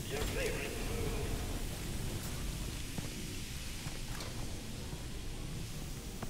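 Heavy boots clank on a metal floor.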